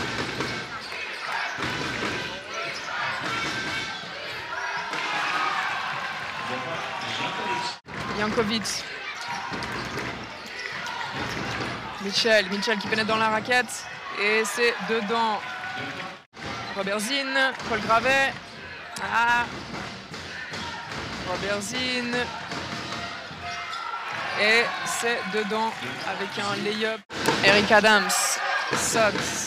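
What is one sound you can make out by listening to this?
A crowd murmurs and cheers in an echoing hall.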